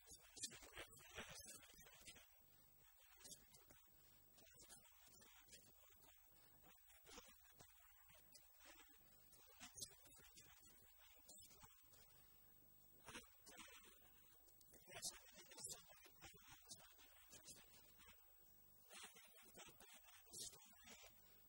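A man speaks calmly to an audience, far off in a large echoing hall.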